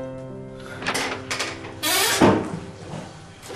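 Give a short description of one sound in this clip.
A door opens with a creak.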